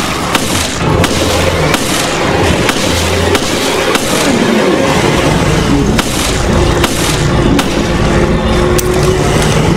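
A pistol fires sharp shots again and again in an echoing room.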